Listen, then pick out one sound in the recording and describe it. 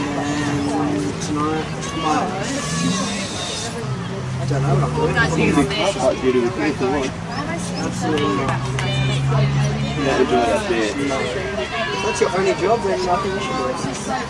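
Young women shout to one another across an open field outdoors.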